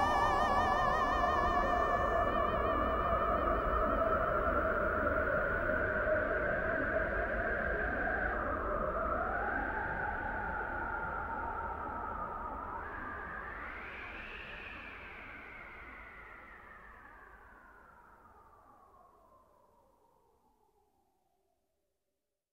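A synthesizer holds warbling tones that slowly glide and fade away.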